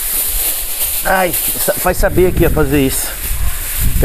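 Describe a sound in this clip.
Aluminium foil crinkles and rustles.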